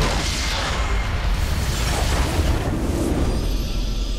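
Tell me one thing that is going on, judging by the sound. Game sound effects of a fight crash and burst.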